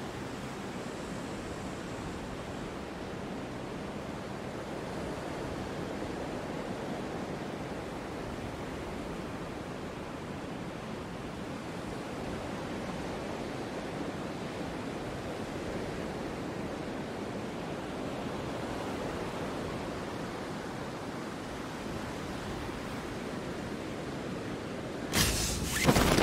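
Wind rushes steadily past a falling skydiver.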